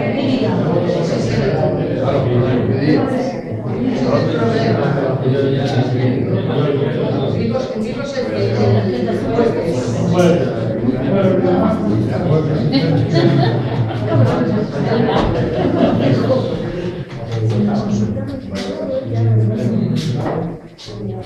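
Several people murmur and talk over one another in a room.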